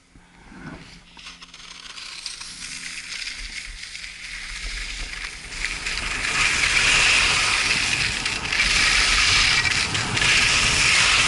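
Wind rushes past outdoors, getting stronger.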